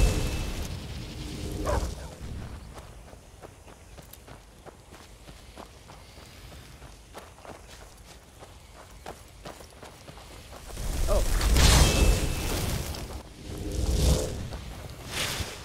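A magical blast roars and crackles.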